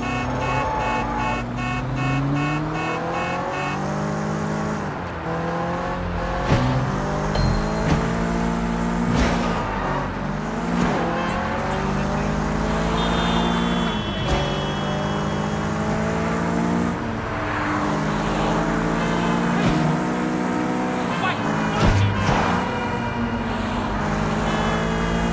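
A car engine revs up and down as gears shift.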